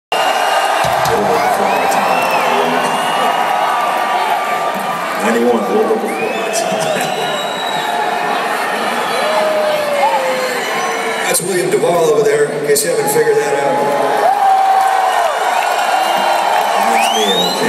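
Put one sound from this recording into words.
A rock band plays loud music through loudspeakers.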